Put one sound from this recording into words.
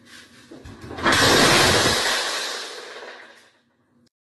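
Glass shatters loudly with a crash and tinkling shards.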